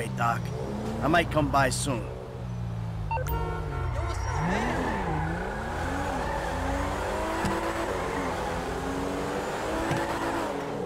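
A car engine revs and changes pitch as the car speeds along.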